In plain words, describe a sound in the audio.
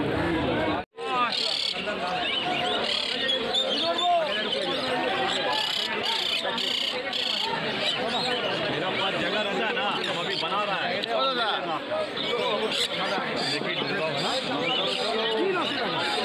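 Parrots chirp and squawk close by.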